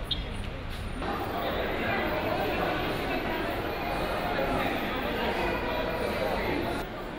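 A woman talks quietly nearby amid a murmur of voices.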